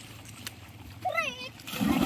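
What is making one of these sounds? A boy splashes into the sea.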